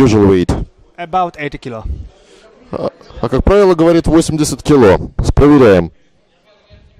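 A young man answers calmly into a handheld microphone.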